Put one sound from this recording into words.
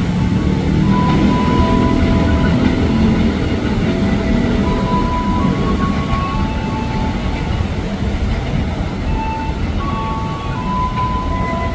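An electric commuter train's motors whine in stepped tones.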